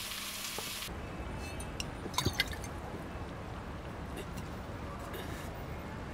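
A man gulps from a bottle.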